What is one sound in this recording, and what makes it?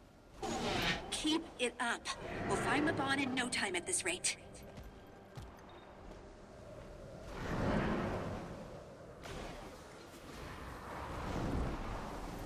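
Wind whooshes as a winged game character glides through the air.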